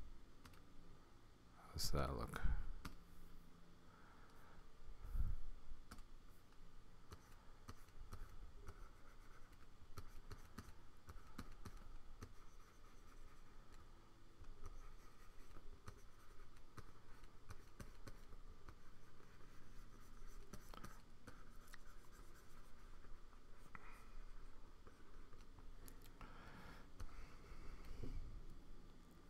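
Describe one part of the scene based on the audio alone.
An older man talks quietly and calmly, close to a microphone.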